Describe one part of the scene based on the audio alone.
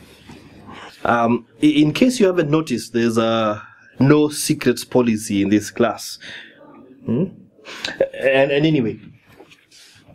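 A man speaks calmly and close by, with a deep voice.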